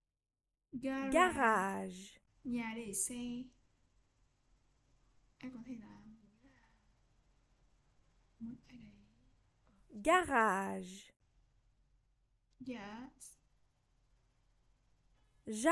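A young woman speaks words slowly and clearly, close to a microphone, with pauses between them.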